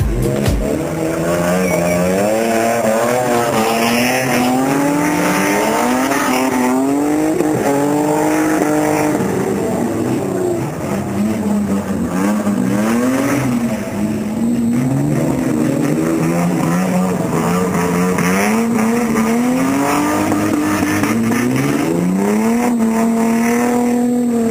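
A car engine revs hard, rising and dropping in pitch.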